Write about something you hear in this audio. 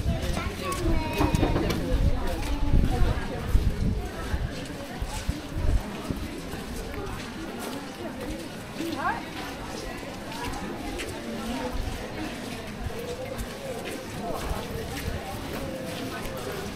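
Footsteps tap on a wet paved street.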